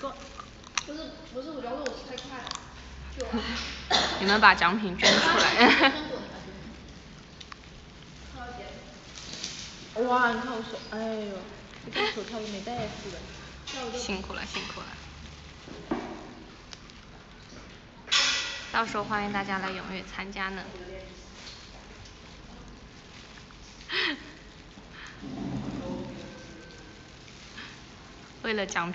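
A young woman talks casually and close by.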